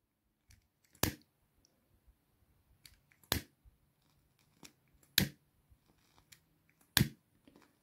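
A lighter clicks sharply again and again.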